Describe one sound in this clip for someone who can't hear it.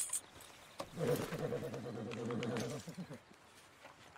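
A man speaks softly to a horse.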